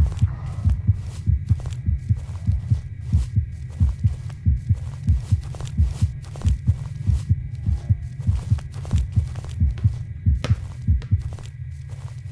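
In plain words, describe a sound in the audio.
Footsteps thud quickly and steadily on a hard floor.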